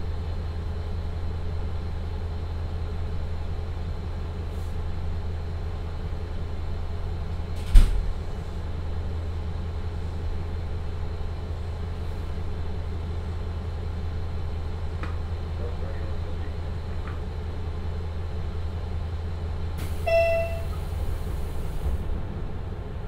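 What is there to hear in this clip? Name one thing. A diesel engine idles nearby with a steady low rumble.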